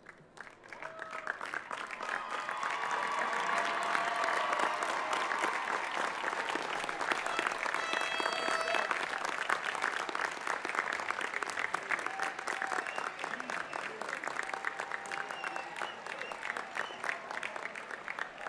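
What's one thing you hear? People in a crowd whoop and shout with excitement.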